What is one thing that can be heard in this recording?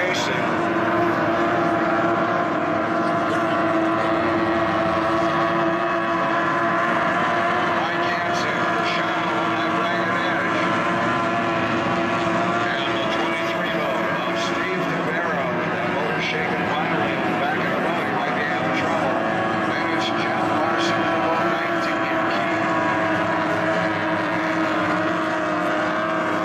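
Racing boat engines roar loudly at high pitch as boats speed across the water.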